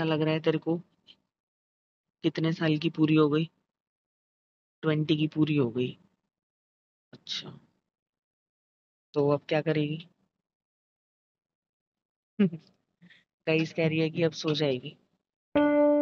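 A young woman speaks with animation close to the microphone, in short bursts.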